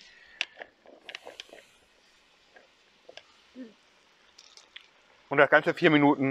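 Oil sizzles and crackles as food fries in a pan.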